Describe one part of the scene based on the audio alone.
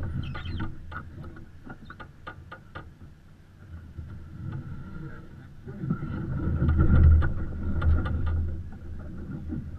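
A winch clicks and ratchets.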